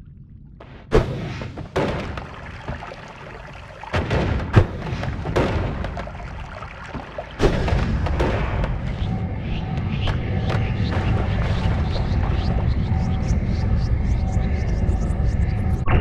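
Magic spells crackle and burst loudly.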